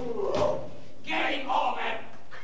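Men shout on a stage.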